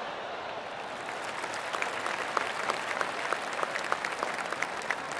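A crowd claps.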